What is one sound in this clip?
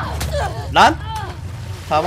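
Water splashes as bodies struggle in it.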